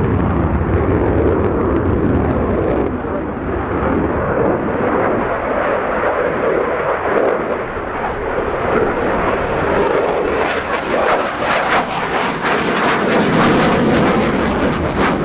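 A twin-engine fighter jet roars overhead.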